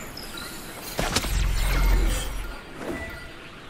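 A magical spell whooshes and shimmers.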